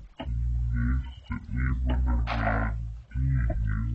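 A dirt block is set down with a soft thud.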